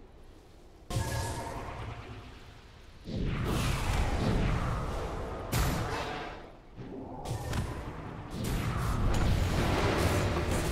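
Magic spells crackle and boom in a fantasy battle.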